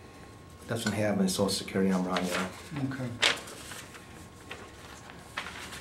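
Paper rustles as sheets are handled.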